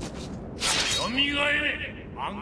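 A man's deep, growling voice proclaims loudly and dramatically.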